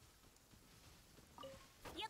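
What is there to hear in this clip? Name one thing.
A sword swishes in a video game.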